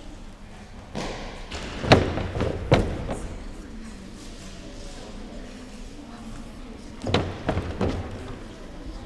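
A gymnast's feet and hands thump on a springy mat in a large echoing hall.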